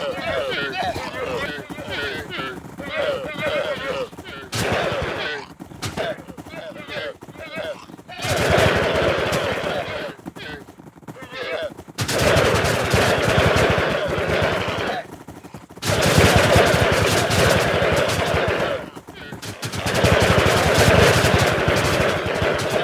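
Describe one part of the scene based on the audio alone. A large herd of llamas bleats and grunts all at once.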